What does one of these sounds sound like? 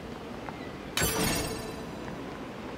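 A loud whooshing blast bursts out and fades.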